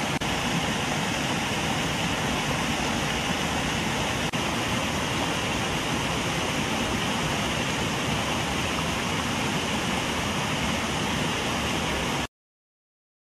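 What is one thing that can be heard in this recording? Water churns and splashes steadily from a pond aerator.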